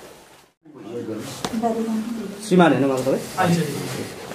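A young man speaks nearby to a room.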